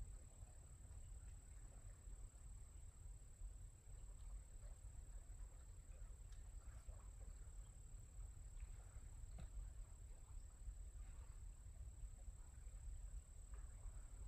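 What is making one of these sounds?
A creek trickles and gurgles over rocks.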